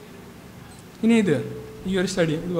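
A young man speaks calmly into a microphone over a loudspeaker, with pauses.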